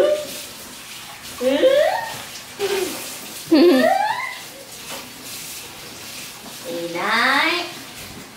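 A baby squeals and laughs excitedly up close.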